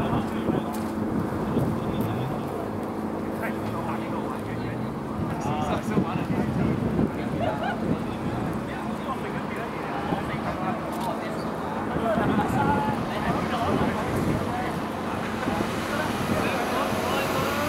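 Wind gusts across open ground outdoors.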